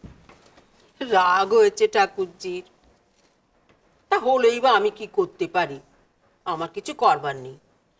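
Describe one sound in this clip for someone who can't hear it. An older woman speaks in a firm, raised voice.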